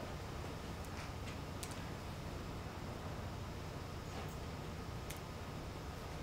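Keys click softly on a keyboard.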